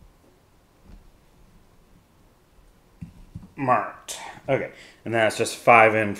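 A plastic game piece is set down on a table with a soft knock.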